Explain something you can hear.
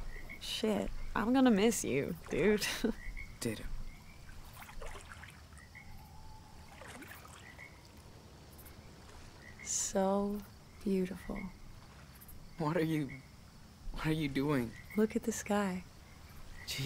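A young man speaks quietly and calmly nearby.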